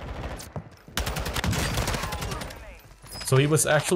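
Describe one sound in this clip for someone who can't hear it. An automatic rifle fires rapid shots.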